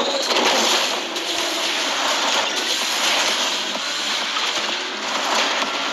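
A car engine roars at high speed.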